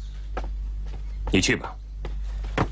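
A middle-aged man speaks a short calm reply.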